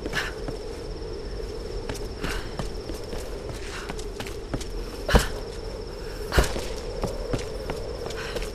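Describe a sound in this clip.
Footsteps knock on hollow wooden boards.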